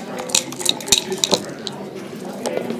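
Dice rattle and clatter onto a wooden board.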